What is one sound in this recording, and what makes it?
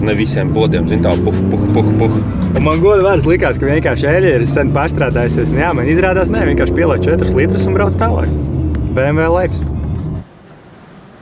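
A car engine hums while driving.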